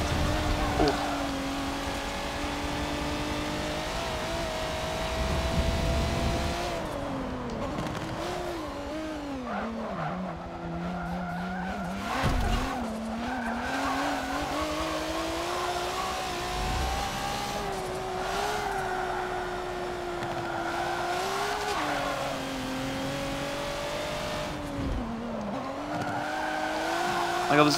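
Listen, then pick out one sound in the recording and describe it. A race car engine roars and revs up and down as gears shift.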